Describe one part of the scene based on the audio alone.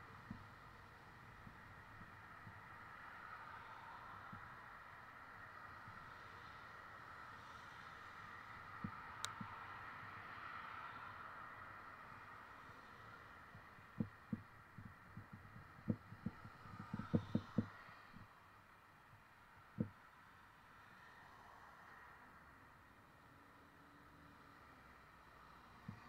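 Traffic hisses steadily on a nearby wet road.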